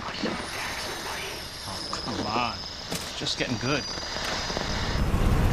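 A man speaks in a low, tense voice close by.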